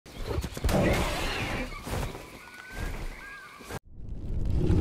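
Blows thud against stone in quick hits.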